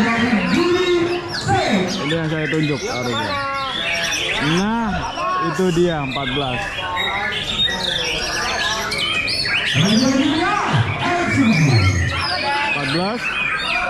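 Many songbirds sing and chirp loudly all around.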